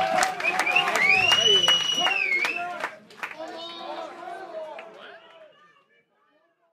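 A crowd cheers and whistles, then fades away.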